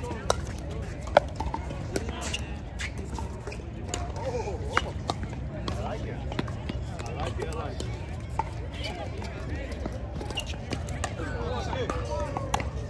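Paddles hit a ball with sharp, hollow pops.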